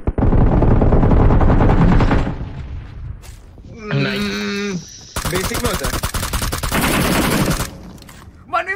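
Rapid gunfire bursts in a video game.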